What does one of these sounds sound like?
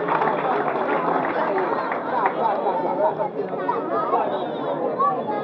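A large crowd chatters and calls out loudly all around, outdoors.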